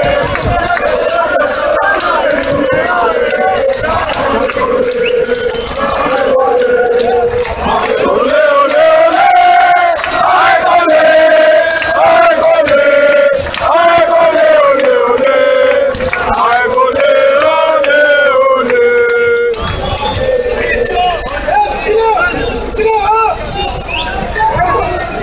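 A large crowd of men chants and sings loudly outdoors.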